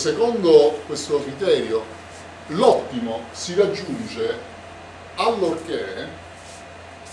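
A middle-aged man lectures with animation, close by.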